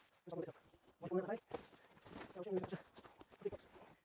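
A large cardboard box thumps down onto grass.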